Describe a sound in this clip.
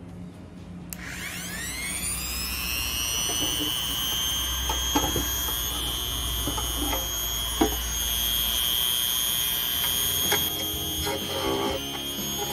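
A power tool whirs up to speed and runs with a steady high whine.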